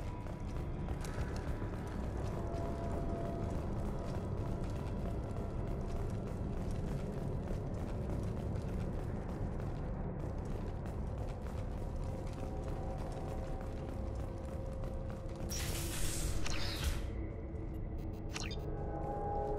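Heavy footsteps clank on a metal floor.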